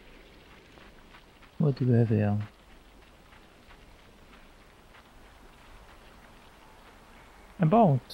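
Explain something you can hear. Light footsteps patter on rock.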